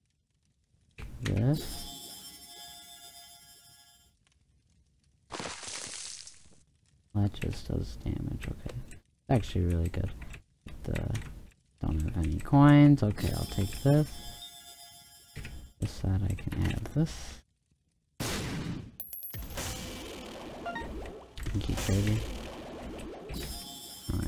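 Video game sound effects chime and jingle.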